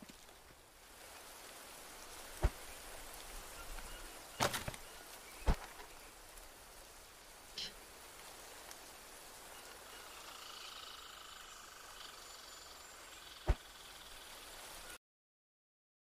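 Leaves rustle faintly in a light breeze.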